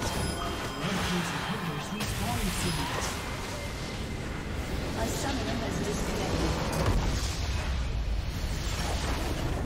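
Game spell effects crash and blast in a busy fight.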